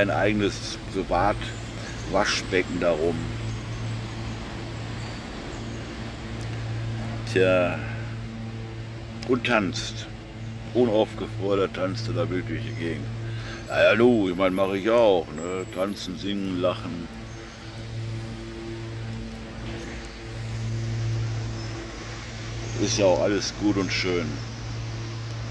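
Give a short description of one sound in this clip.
An elderly man speaks calmly close to the microphone, with pauses.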